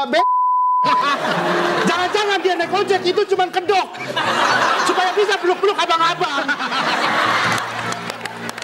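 Young men sing loudly together.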